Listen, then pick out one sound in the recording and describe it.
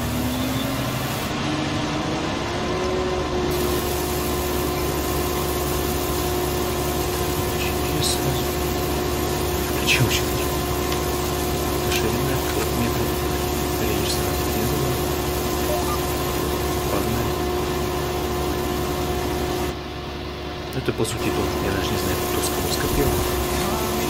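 A harvester engine hums steadily.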